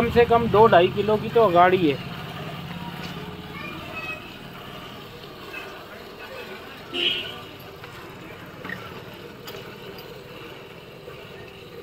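Milk squirts in streams into a metal pail.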